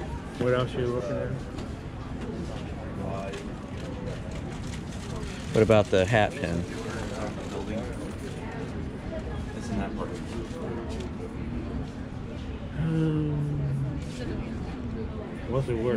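Small metal badges click softly as they are picked up and handled.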